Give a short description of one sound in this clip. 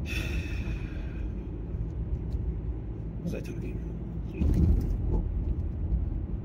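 A car engine hums low and steady from inside the car.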